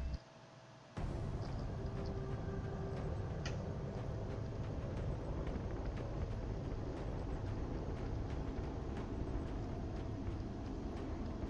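A dropship engine hums with a low steady rumble.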